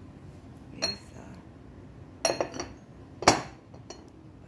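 Ceramic lids clink against ceramic pots.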